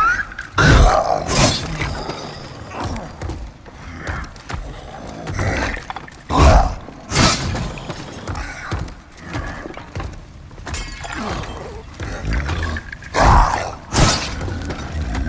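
Sword blows clash in a fight.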